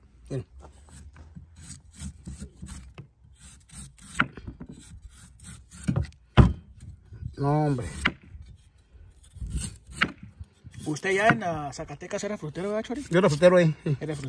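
A knife slices and scrapes through a firm vegetable.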